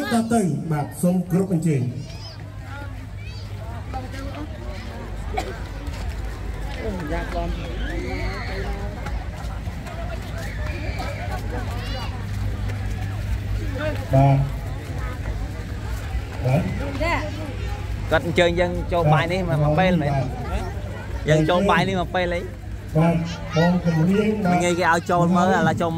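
Men and women chatter and murmur in a crowd outdoors.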